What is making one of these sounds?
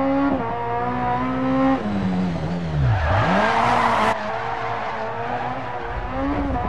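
A rally car engine revs hard, rising and falling as gears shift.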